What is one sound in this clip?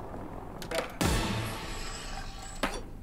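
A skateboard grinds loudly along a rail.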